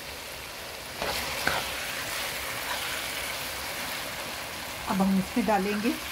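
A spoon scrapes and stirs through food in a pan.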